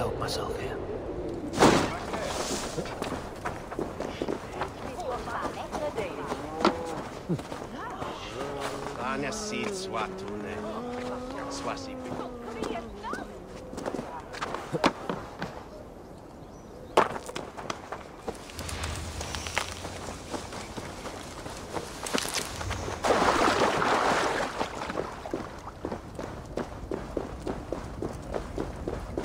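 Footsteps crunch on dirt and stone.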